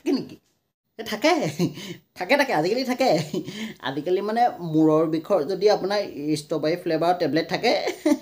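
A young man talks with animation and laughs.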